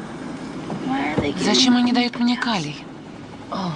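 A young girl speaks weakly.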